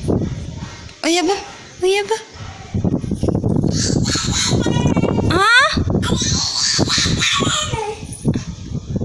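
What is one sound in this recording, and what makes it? A toddler squeals and babbles close by.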